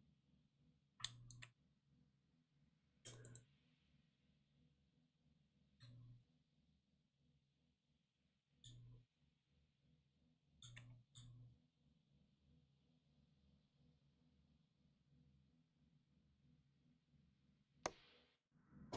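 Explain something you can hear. A switch clicks a few times.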